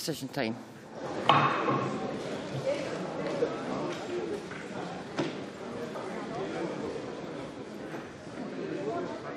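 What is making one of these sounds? Many people murmur and chat in a large hall.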